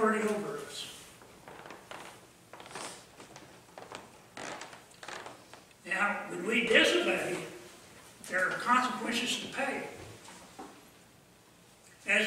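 An elderly man speaks calmly through a microphone in an echoing room.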